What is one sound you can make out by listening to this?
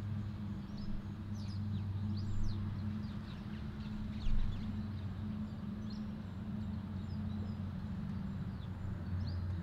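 Birds chirp and twitter in short, high calls.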